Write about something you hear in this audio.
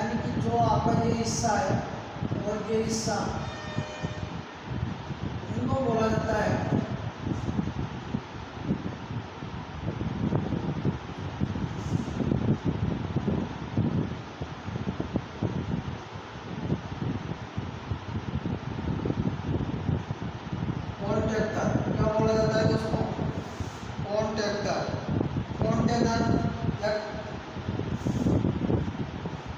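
A young man speaks calmly close to a clip-on microphone.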